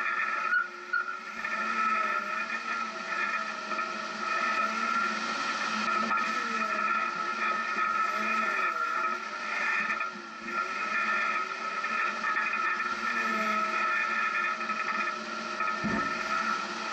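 An engine hums steadily, rising and falling in pitch as a vehicle drives along.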